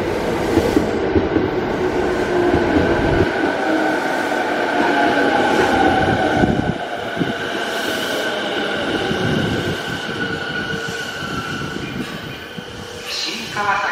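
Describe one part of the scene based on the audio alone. Train brakes whine with a steady high tone that fades as the train stops.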